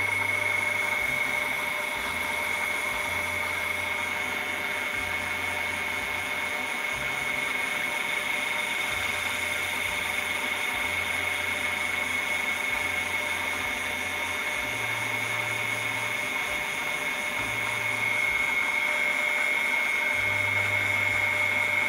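A small electric motor hums steadily.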